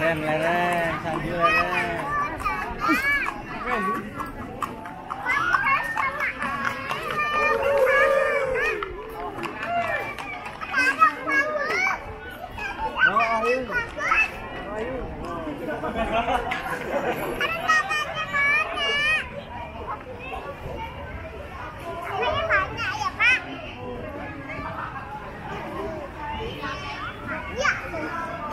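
A crowd of men and women chatters and calls out nearby, outdoors.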